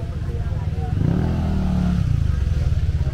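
A motorcycle engine revs up nearby.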